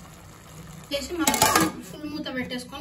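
A metal lid clanks onto a pot.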